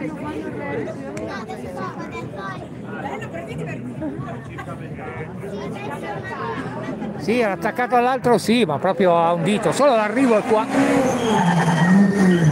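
Several men chatter nearby outdoors.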